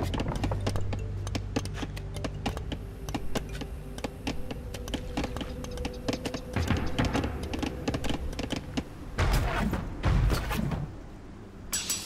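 Tools knock and chop in quick, uneven taps.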